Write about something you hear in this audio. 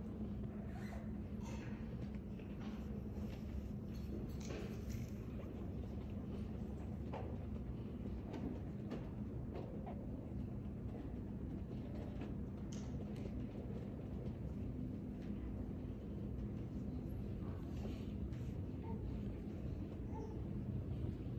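People murmur quietly in the distance in a large room.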